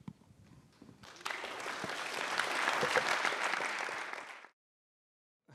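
An audience applauds in a large room.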